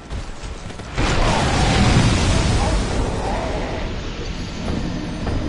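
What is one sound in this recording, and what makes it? A deep, booming crash sounds as a knight is struck down.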